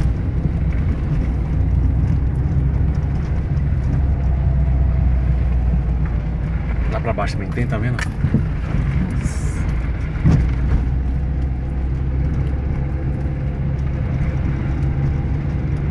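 A car engine rumbles steadily at low speed.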